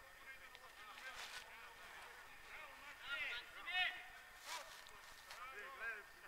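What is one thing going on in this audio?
Men shout to one another from across an open field, some way off.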